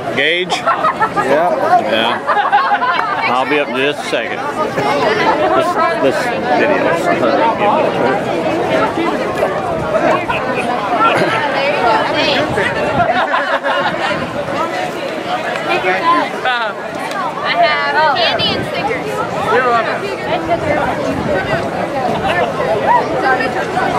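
Young girls talk and laugh excitedly nearby.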